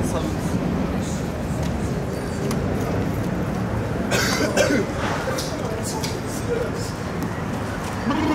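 Footsteps scuff on a pavement outdoors.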